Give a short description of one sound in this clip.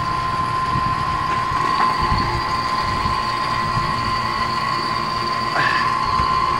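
An air conditioning unit hums steadily nearby.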